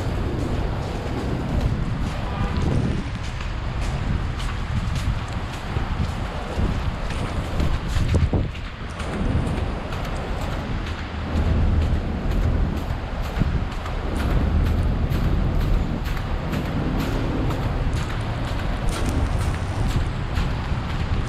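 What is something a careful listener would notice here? City traffic rumbles steadily on a street nearby.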